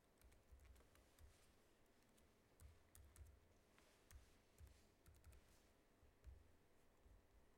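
Keys click softly on a computer keyboard.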